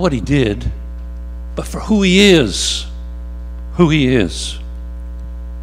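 An elderly man speaks slowly through a microphone, with long pauses.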